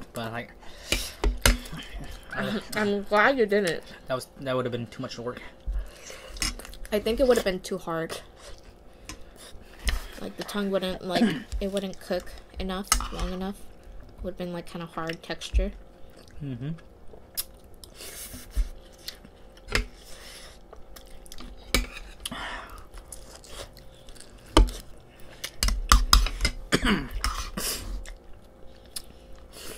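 Spoons clink against bowls.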